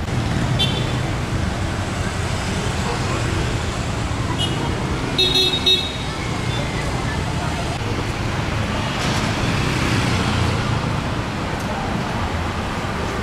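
Traffic rumbles steadily along a city street.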